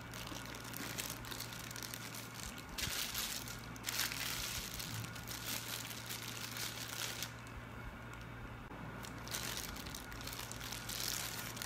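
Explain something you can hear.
Hands crinkle and rustle a plastic wrapping.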